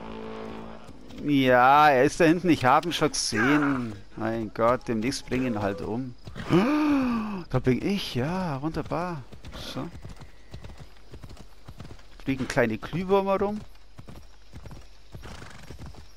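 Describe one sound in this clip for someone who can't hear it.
A horse gallops on a dirt path, hooves thudding.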